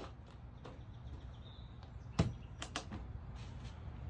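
A wooden slab thuds onto the ground.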